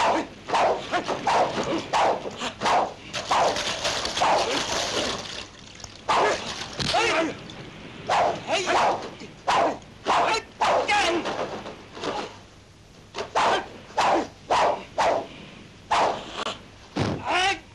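A young man shouts and grunts loudly.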